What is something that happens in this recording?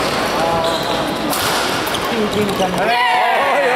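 A badminton racket strikes a shuttlecock.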